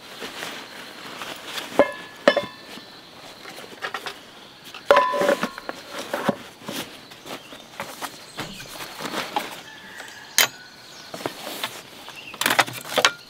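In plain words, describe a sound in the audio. A foam mat rustles as it is handled.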